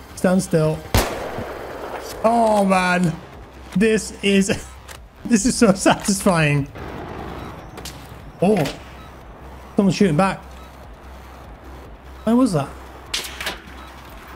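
A rifle fires loud, sharp shots.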